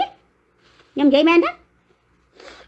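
A young woman sobs and wails close by.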